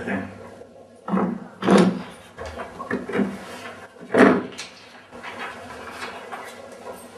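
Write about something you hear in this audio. A man talks at close range.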